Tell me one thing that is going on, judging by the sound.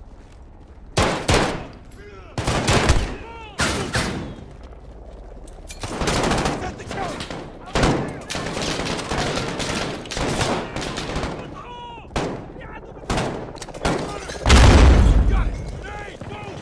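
Gunshots ring out in loud, sharp bursts.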